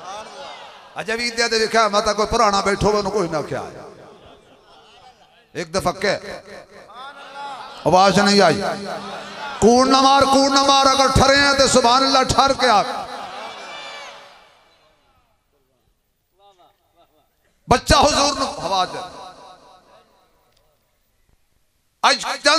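A man speaks with animation into a microphone, heard through loudspeakers with echo.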